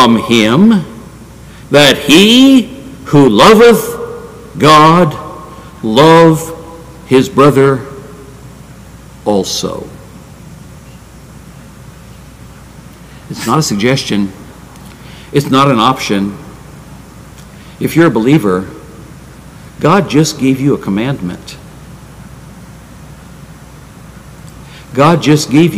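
An elderly man speaks emphatically into a microphone, with pauses between phrases.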